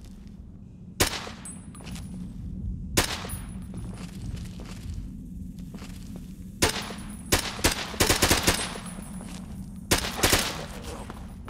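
A rifle fires sharp, loud shots in bursts.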